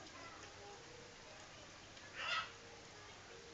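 Water splashes briefly in a plastic tub.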